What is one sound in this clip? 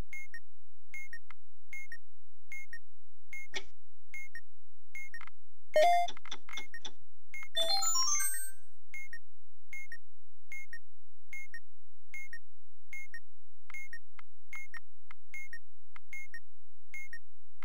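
An electronic timer beeps in a steady, even rhythm.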